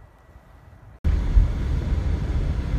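A car rolls along a snowy road with a low road noise.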